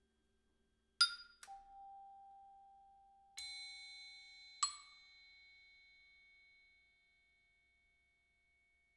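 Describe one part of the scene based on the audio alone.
A percussionist strikes metal bars with mallets, and bright bell-like notes ring out and slowly fade.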